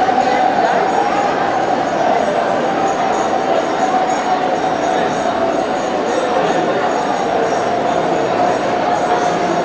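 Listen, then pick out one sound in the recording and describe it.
A man sings into a microphone, heard through loudspeakers.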